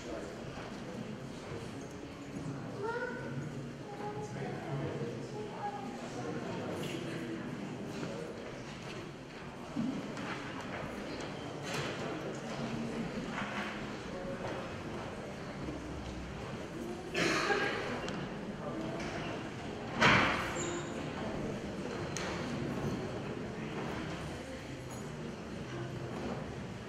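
A congregation murmurs and chatters quietly in a large echoing hall.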